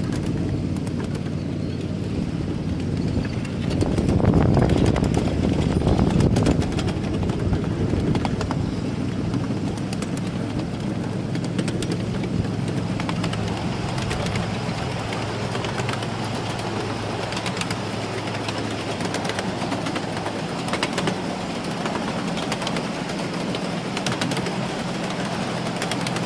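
A miniature train rumbles steadily along its track.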